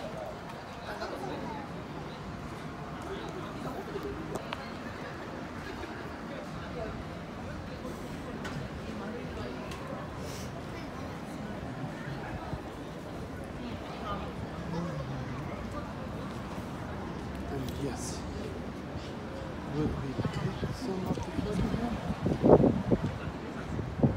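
Voices of a crowd chatter outdoors at a distance.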